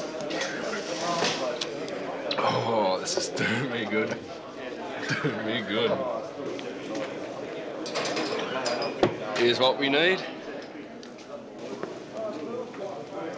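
A busy crowd murmurs in the background.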